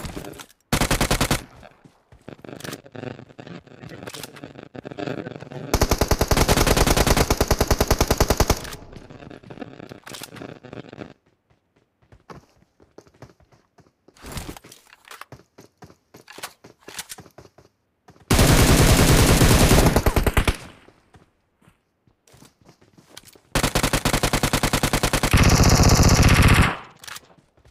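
Automatic gunfire rattles in short, rapid bursts.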